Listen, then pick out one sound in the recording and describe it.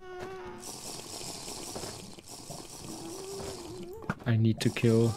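Lava bubbles and pops steadily.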